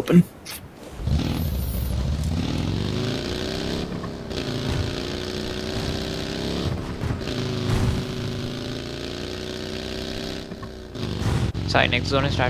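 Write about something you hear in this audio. A buggy engine starts up and revs, droning steadily as it drives.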